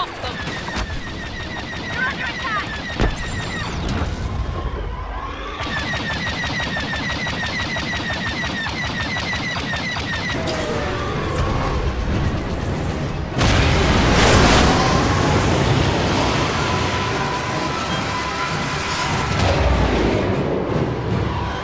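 A starfighter's engines roar steadily.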